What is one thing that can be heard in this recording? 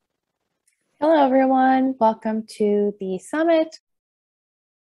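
A woman speaks briefly and calmly over an online call.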